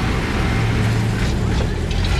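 A vehicle engine rumbles steadily while driving on a road.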